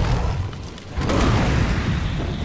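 A grenade launcher fires with a loud blast.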